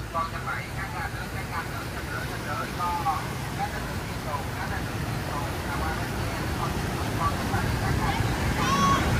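Vehicles splash and swish through deep floodwater.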